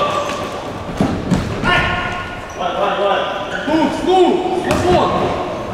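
A ball thuds as it is kicked on a hard floor.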